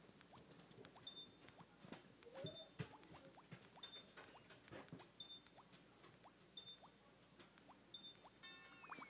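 A video game plays short, faint electronic blips as a bird flaps.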